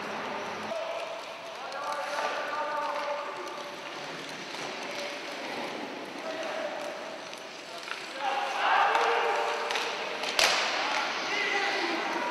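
Sledge blades scrape across the ice in a large echoing rink.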